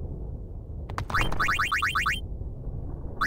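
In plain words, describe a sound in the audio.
Lightning bolts crack and strike in quick succession.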